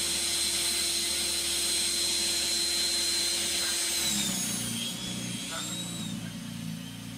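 An electric snow blower whines steadily, its pitch wavering near the end.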